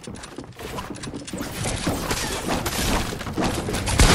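A pickaxe strikes a wooden wall with sharp knocks.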